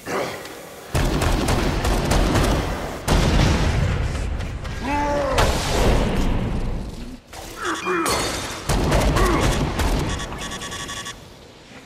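Guns fire in rapid, loud bursts.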